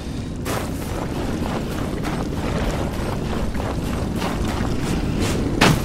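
Heavy armoured footsteps thud quickly on the ground.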